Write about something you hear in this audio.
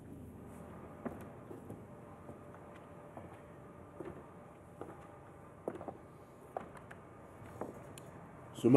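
Footsteps walk slowly across a stage.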